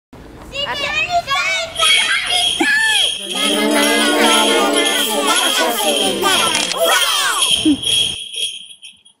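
Young children shout and squeal excitedly close by.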